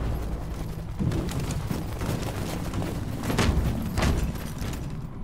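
Heavy boots tramp in step on pavement.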